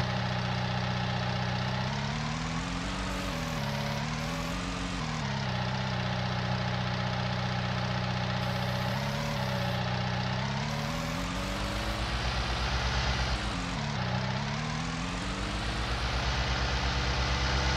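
A vehicle engine hums and rises and falls in pitch as it speeds up and slows down.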